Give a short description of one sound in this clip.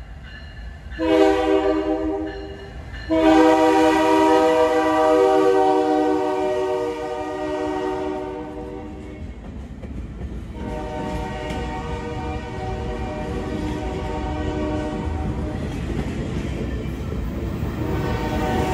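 A locomotive horn blares loudly in long blasts.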